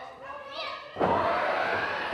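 A wrestler slams onto a wrestling ring mat with a loud thud.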